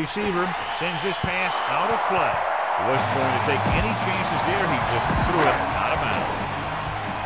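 A stadium crowd cheers louder for a while.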